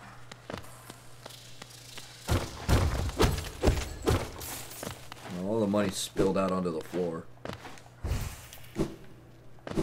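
Light, quick footsteps patter on the ground.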